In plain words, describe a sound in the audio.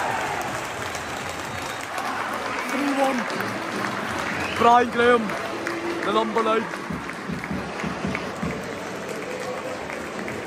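A crowd of fans sings and chants in an open stadium.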